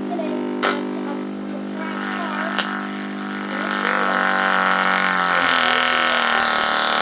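A loudspeaker plays loud music with a deep bass hum.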